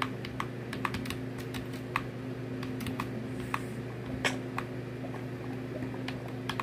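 Short tapping sounds of blocks being broken and placed play from a laptop speaker.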